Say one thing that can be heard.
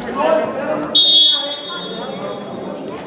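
A referee's whistle blows once sharply.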